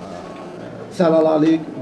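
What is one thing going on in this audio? A young man speaks close to microphones.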